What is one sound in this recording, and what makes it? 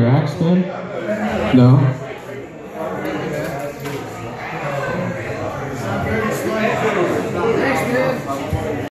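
An electric bass guitar plays a bouncy line.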